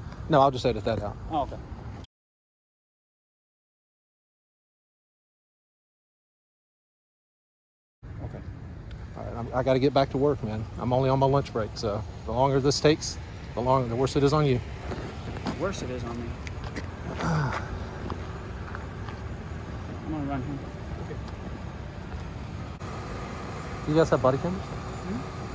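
A young man speaks calmly close by, outdoors.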